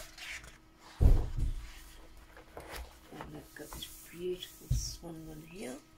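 Sheets of paper thump down onto a stack.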